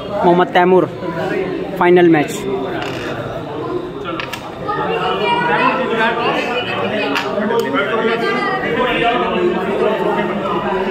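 A crowd of men talk and chatter nearby.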